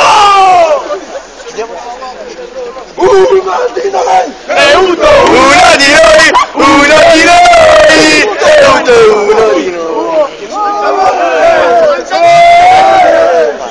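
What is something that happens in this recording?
A crowd of young men shout and sing loudly close by.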